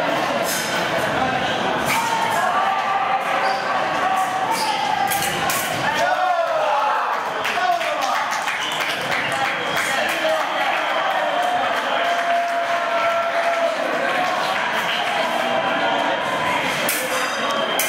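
Fencing blades clash and scrape.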